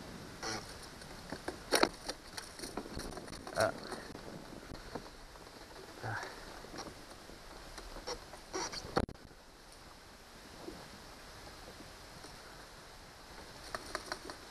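Small metal tools click and rattle while a fish is unhooked.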